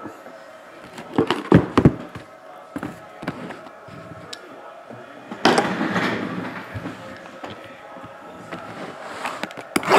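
Cardboard boxes knock softly as they are set down on a table.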